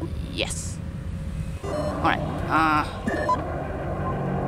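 Electronic tones chirp and sweep in short bursts.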